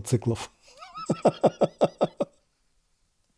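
A man laughs heartily into a microphone close by.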